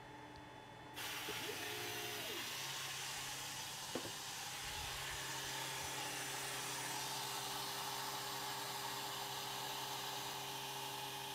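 A laser module's cooling fan whirs with a steady hiss.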